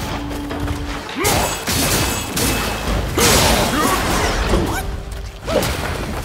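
Blows clash and thud in quick succession.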